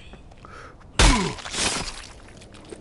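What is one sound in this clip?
An axe strikes a body with a heavy, wet thud.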